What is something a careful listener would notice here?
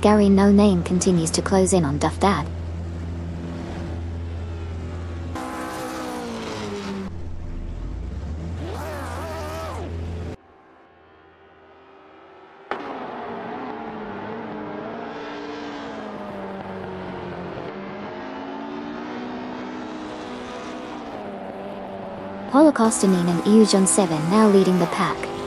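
A racing car engine roars and revs up and down.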